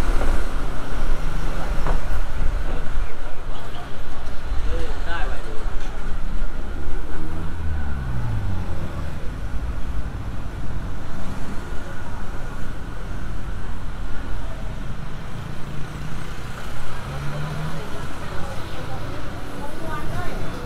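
Traffic hums and rumbles steadily along a street outdoors.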